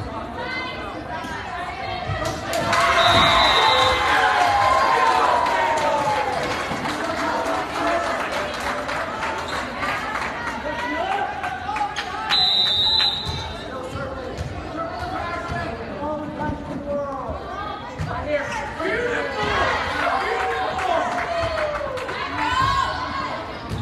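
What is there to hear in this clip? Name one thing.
A volleyball thuds against hands and arms.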